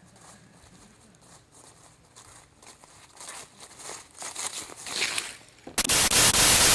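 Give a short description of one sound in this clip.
Footsteps rustle through dry grass and undergrowth, coming closer.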